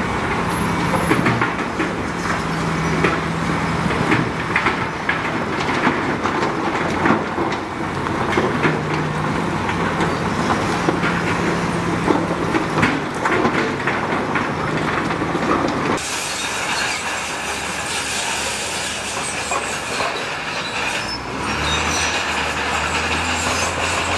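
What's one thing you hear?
Bulldozer tracks clank and squeal.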